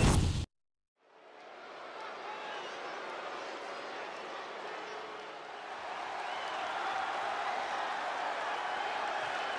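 A large arena crowd cheers and murmurs steadily.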